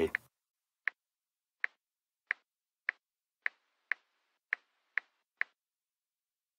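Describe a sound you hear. A phone's keyboard gives short soft clicks as keys are tapped.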